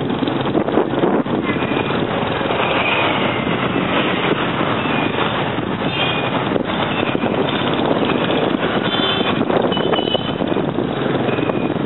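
Horns beep in street traffic.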